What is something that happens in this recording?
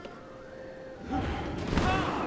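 A loud whooshing burst sounds at the end.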